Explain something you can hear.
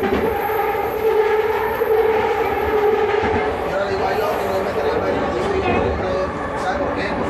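An electric train hums and whines steadily as it rolls along the track.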